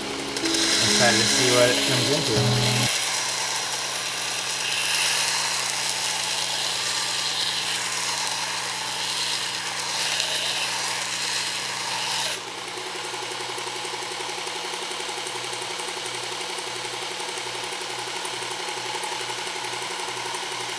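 A belt grinder motor hums steadily.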